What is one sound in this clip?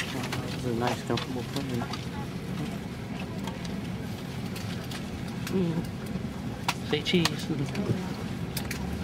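Passengers talk nearby in mixed voices.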